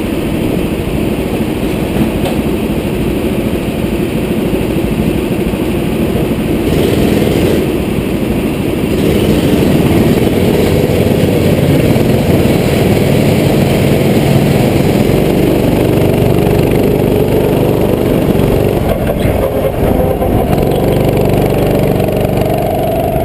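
Other kart engines buzz nearby.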